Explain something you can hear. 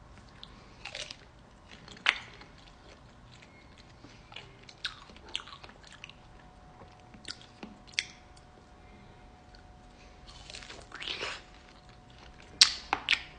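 A woman sucks and slurps on a frozen treat close to a microphone.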